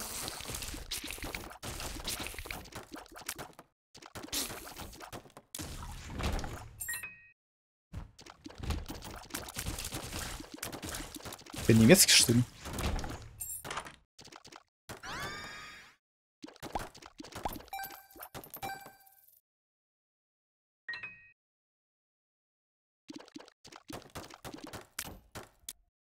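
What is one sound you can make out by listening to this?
Video game sound effects pop, splat and chime in quick bursts.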